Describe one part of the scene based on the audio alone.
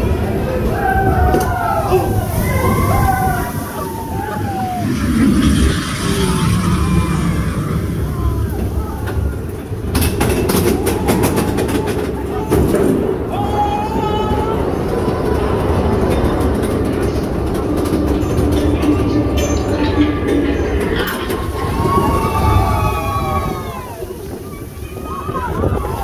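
A roller coaster train rumbles and rattles along its track.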